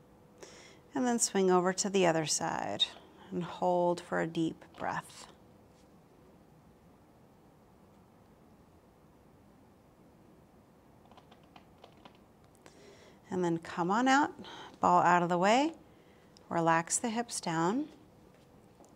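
A woman speaks calmly into a close microphone.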